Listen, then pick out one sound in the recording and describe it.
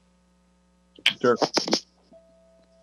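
A middle-aged man speaks briefly over an online call.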